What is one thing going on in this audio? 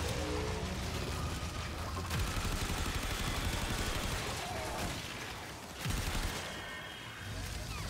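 Energy weapons fire in rapid crackling bursts.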